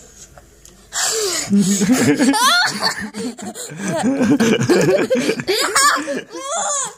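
A boy laughs loudly up close.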